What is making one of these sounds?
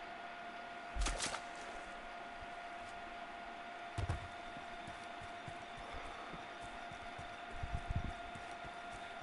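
Heavy footsteps thud on the ground after short jumps.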